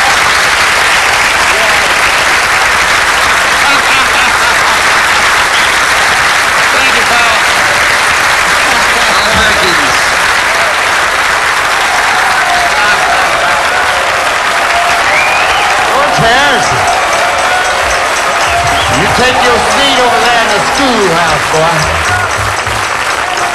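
A large crowd applauds and cheers loudly.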